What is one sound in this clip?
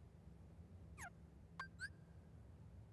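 Short electronic menu blips chime.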